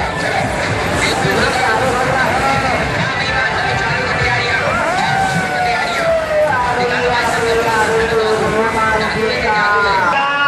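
Riders shriek and scream as the ride swings.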